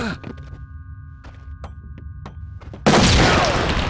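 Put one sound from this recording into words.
Footsteps crunch over rubble and debris.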